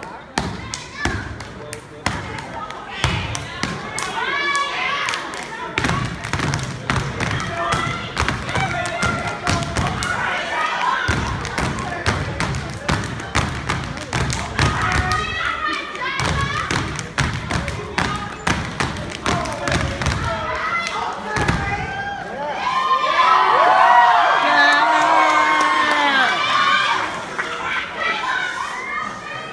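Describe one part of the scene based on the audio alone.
Young women chant and shout loudly together.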